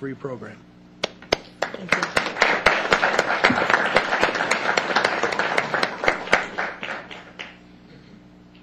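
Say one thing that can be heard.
A crowd applauds, then the clapping fades.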